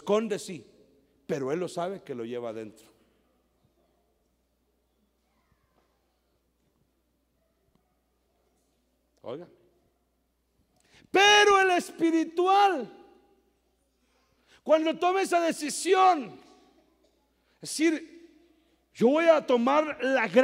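A middle-aged man preaches with passion into a microphone over loudspeakers, in short bursts with pauses.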